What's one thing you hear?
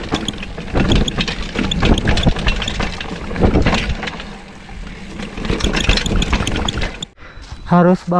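A mountain bike rattles and bumps quickly over a rough dirt trail.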